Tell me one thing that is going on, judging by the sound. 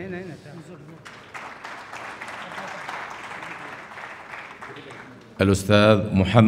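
A crowd murmurs and applauds in a large hall.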